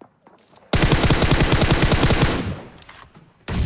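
Rapid gunfire bursts loudly.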